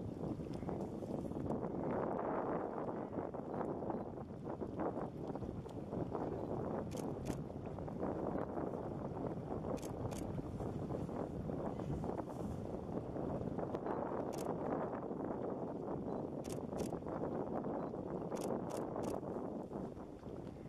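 Water ripples and laps gently.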